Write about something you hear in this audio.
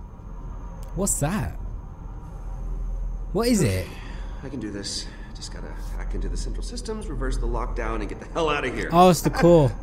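A man talks casually, close to a microphone.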